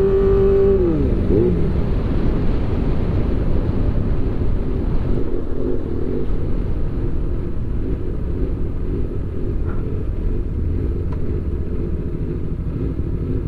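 Wind rushes past a moving motorcycle rider.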